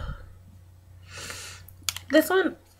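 A young woman sniffs a perfume bottle.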